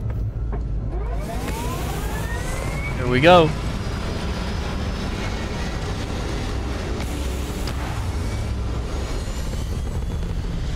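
A spaceship engine roars steadily as the ship lifts off.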